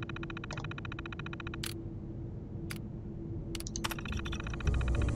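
An old computer terminal hums steadily.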